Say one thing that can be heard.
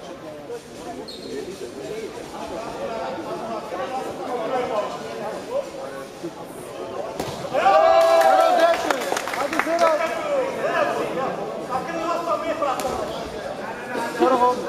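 A crowd of men and women shouts and cheers in a large echoing hall.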